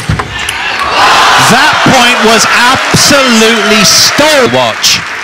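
Young men shout and cheer loudly.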